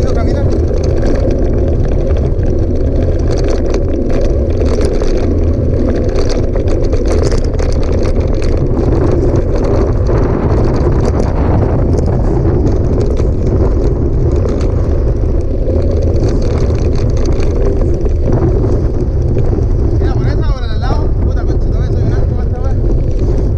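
Bicycle tyres roll and crunch over loose gravel.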